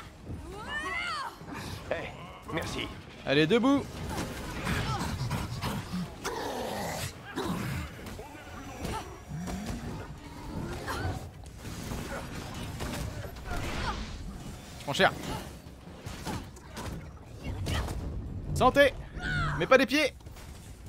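Game blasts, punches and explosions crash repeatedly.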